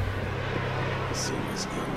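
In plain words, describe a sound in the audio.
A game character's footsteps patter quickly.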